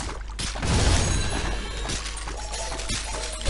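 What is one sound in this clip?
A bright chime rings as a level is gained.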